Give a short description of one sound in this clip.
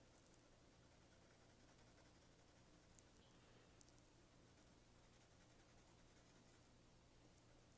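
A pencil scratches softly on paper with quick, light strokes.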